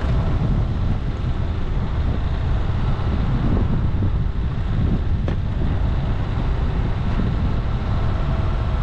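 Tyres crunch and bump over a dirt track.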